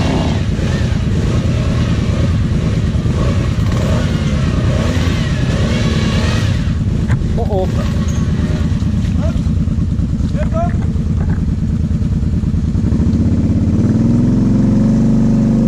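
Another quad bike engine revs as it climbs through mud.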